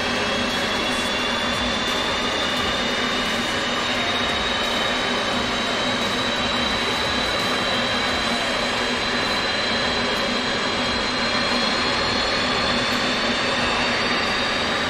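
A jet engine hums and whines steadily, its pitch creeping slowly upward.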